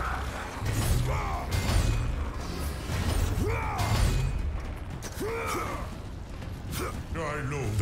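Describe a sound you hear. Blades clash and slash in quick bursts of combat.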